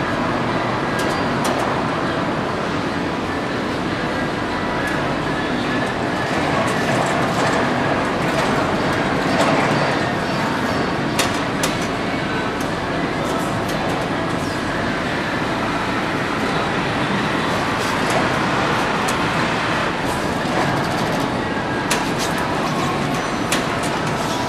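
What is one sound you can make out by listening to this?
A rubber track clanks and knocks as it is drawn onto wheels.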